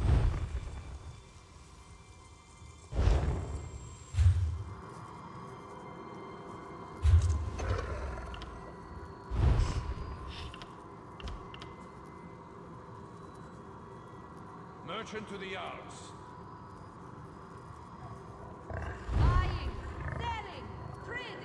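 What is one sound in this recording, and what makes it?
Game menu sounds click and swoosh.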